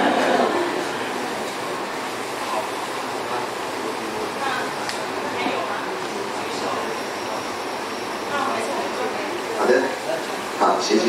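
A woman speaks calmly through a microphone and loudspeakers.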